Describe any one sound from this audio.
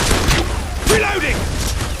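A rifle fires a short burst.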